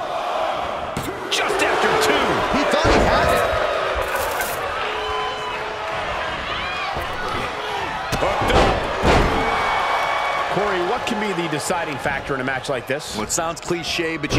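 A large crowd cheers and roars steadily in a big echoing arena.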